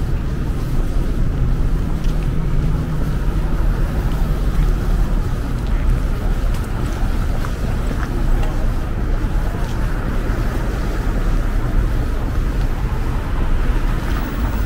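Cars drive past on a wet street nearby.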